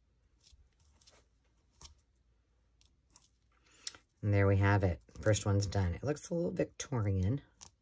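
Paper rustles softly as it is pressed down.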